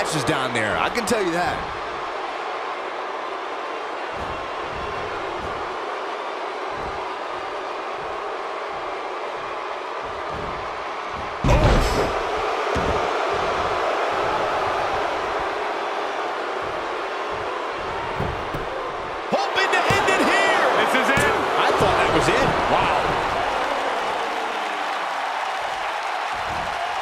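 A crowd cheers steadily in a large arena.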